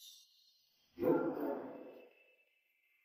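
A young man sighs softly.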